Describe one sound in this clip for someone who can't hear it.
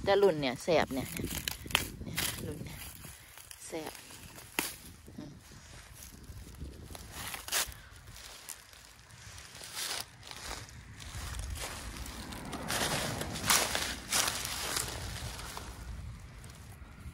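Dry plant stalks rustle and crackle under a hand.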